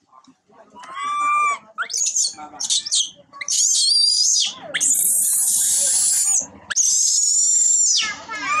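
A young monkey squeals and shrieks shrilly up close.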